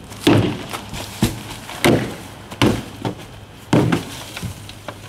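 A boy strikes a plastic bin with a stick, making hollow thuds.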